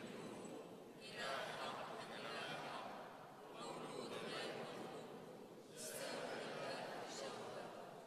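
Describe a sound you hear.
A crowd of men and women sings together in a large echoing hall.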